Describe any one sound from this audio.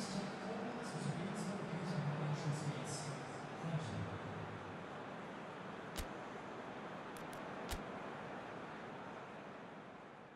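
A stadium crowd roars and cheers in the distance.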